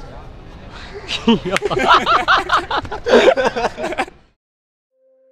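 Young men laugh loudly close by.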